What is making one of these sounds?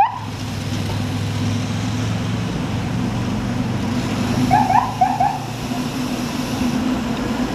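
A motorcycle engine drones nearby.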